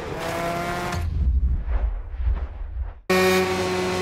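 A motorcycle crashes and tumbles with a low rumble.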